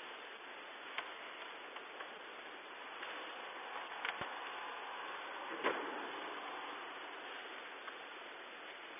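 Footsteps knock softly and echo in a large hall.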